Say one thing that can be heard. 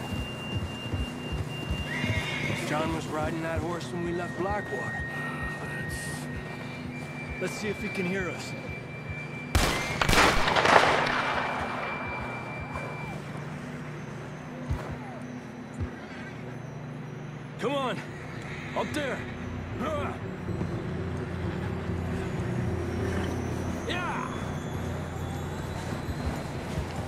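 Horses' hooves crunch through deep snow.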